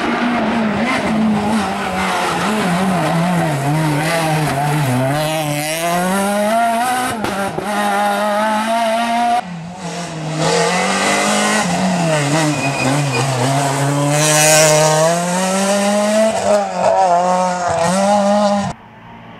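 A rally car engine roars and revs up and down as the car speeds past.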